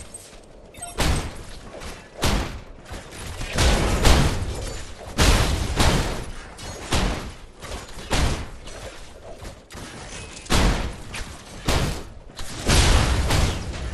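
Weapons fire in bursts with sharp blasts.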